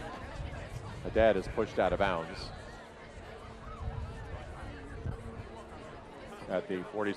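A crowd murmurs and cheers outdoors.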